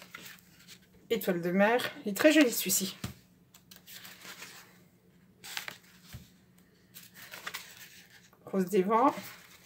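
Paper sheets rustle as they are handled.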